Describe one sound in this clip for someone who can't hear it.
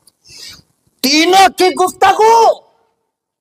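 A man preaches loudly and with fervour into a microphone, heard through a loudspeaker.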